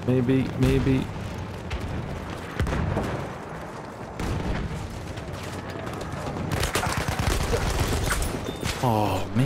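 Gunfire and explosions rumble through a battle.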